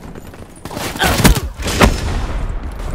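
Sharp shots crack in quick bursts.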